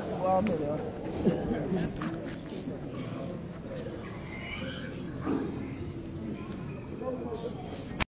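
A crowd of men talks loudly nearby, voices overlapping.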